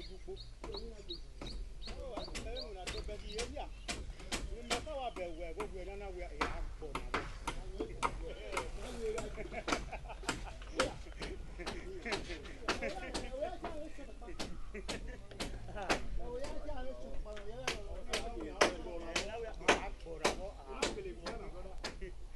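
Hammers strike wood in quick, repeated blows outdoors.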